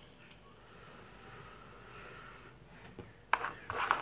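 A man exhales a puff of vapour.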